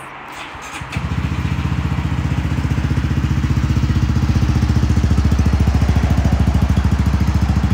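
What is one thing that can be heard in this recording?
A motorcycle engine starts and idles with a steady, throbbing rumble close by.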